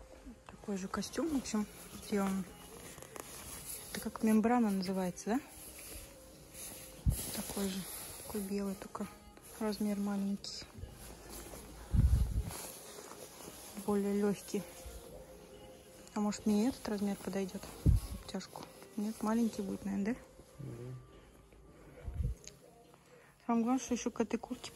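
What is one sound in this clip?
Jacket fabric rustles as a hand handles it.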